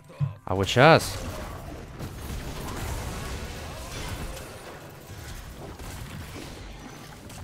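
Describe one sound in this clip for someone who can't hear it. Game spells burst and crackle in a fight.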